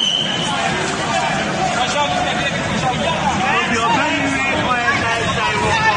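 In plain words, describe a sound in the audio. A dense crowd of men and women talk and shout over one another close by.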